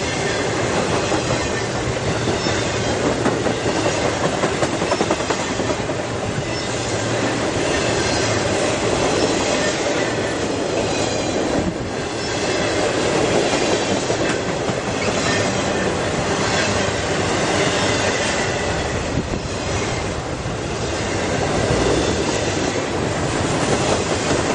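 Train wheels clatter and squeal over the rails.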